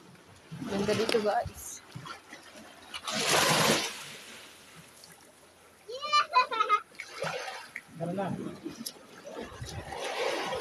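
Small waves wash gently onto a pebbly shore.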